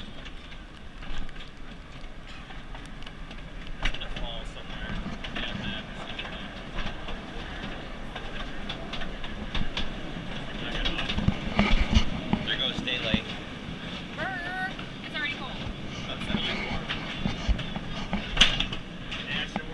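A small train rumbles and clatters along a track, echoing in a tunnel.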